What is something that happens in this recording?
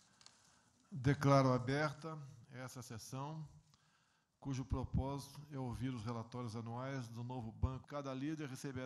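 A man speaks steadily into a microphone, heard over a loudspeaker in a large room.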